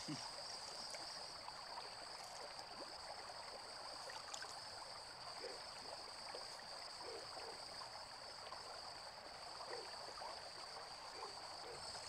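Water splashes gently as hands rub a foot.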